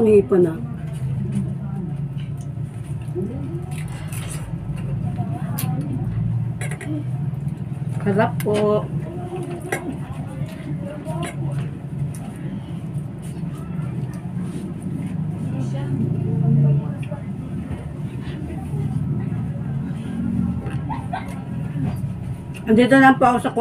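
A woman chews and smacks her lips loudly close to a microphone.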